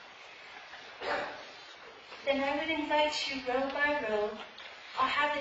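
A woman speaks calmly through a microphone in a large room with a slight echo.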